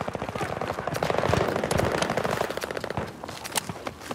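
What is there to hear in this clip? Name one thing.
Footsteps thud quickly on the ground as a soldier runs.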